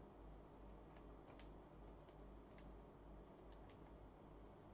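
Computer keys click rapidly.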